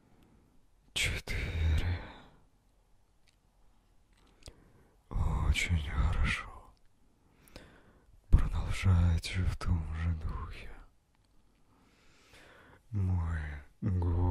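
A young man speaks calmly and close into a microphone, with pauses.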